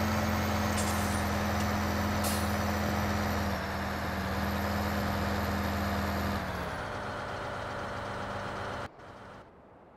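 Harvested crop pours from a loading pipe into a trailer.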